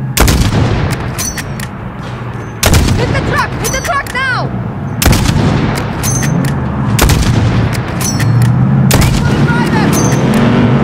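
A rifle bolt clicks and clacks after each shot.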